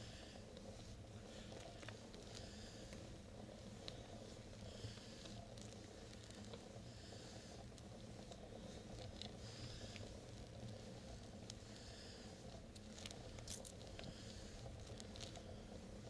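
Wind buffets and rumbles steadily across the microphone.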